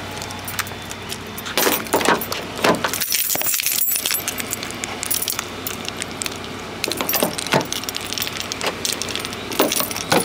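Keys jingle on a key ring.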